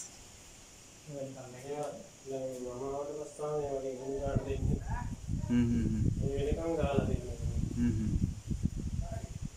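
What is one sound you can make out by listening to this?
An elderly man speaks calmly nearby, explaining.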